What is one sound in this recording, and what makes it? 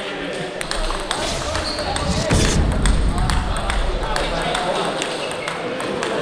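A table tennis ball clicks sharply back and forth off paddles and the table.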